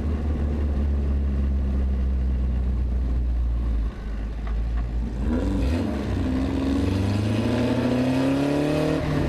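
A race car engine roars loudly up close, dropping as the driver shifts and then revving higher.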